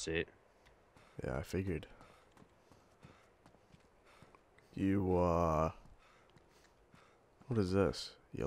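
Footsteps tap on hard floor and stairs.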